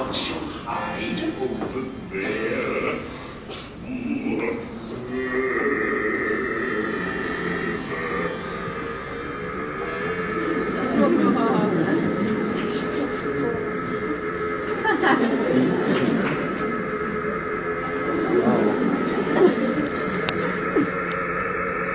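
A man sings theatrically, heard from a distance in a large hall.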